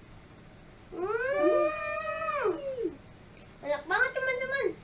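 A young girl exclaims with delight.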